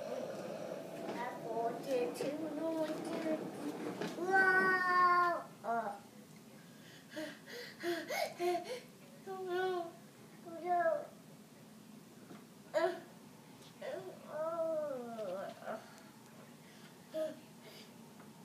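A young child babbles and chatters nearby.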